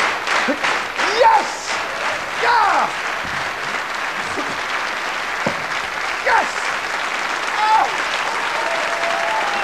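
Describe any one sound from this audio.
A large audience applauds and cheers loudly.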